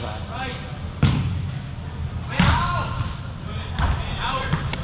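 A ball is kicked with sharp thuds.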